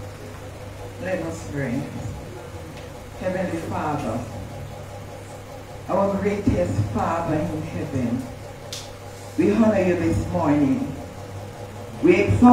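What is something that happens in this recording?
A woman speaks with feeling through a microphone, echoing in a large room.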